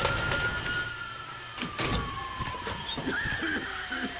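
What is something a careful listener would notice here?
A metal door swings open.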